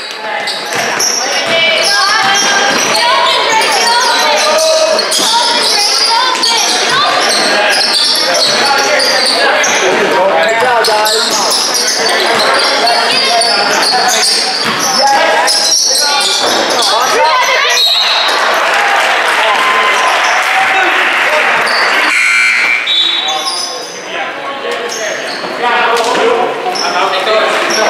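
Spectators shout and cheer loudly in a large echoing hall.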